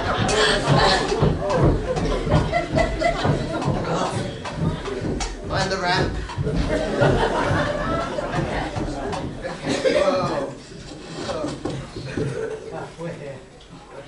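Loud music plays through loudspeakers in a large hall and then fades down.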